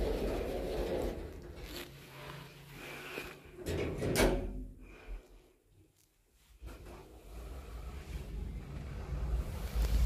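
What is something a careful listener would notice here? An elevator car hums and rumbles as it rises.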